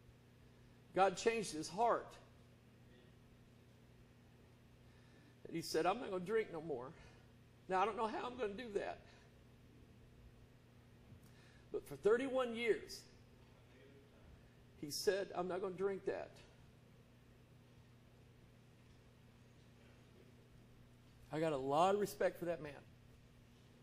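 A middle-aged man preaches with emphasis through a microphone in a reverberant hall.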